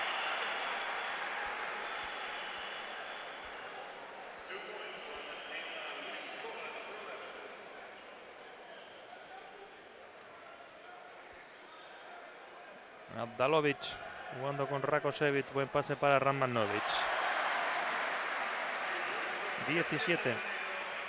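A large crowd murmurs and shouts in a big echoing arena.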